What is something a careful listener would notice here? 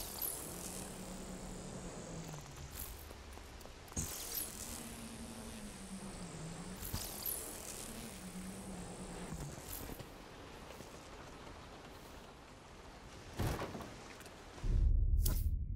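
A rushing energy burst roars and crackles.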